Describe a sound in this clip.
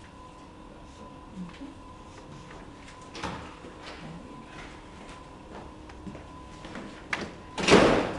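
Paper rustles as sheets are handled.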